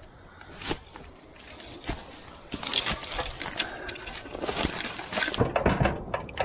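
Dry twigs and grass crunch underfoot.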